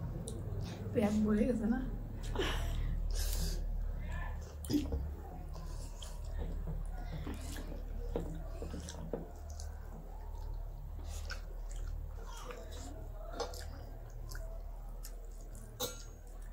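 Two young women chew food loudly close by.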